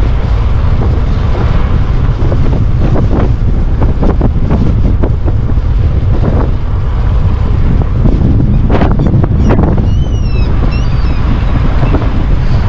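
Wind rumbles and buffets loudly against a moving cyclist's microphone.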